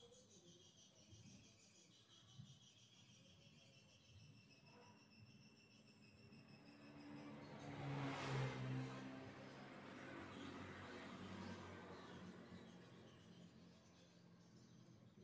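A felt-tip pen scratches softly on paper.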